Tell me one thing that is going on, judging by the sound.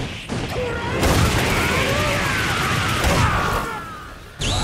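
Rapid punching blows crash and crackle loudly.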